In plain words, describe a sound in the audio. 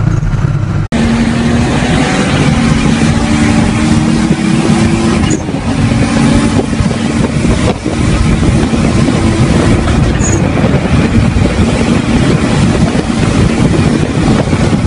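A car's engine roars as it races by.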